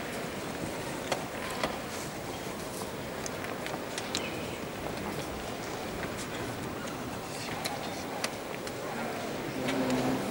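Wooden chess pieces clack quickly onto a board.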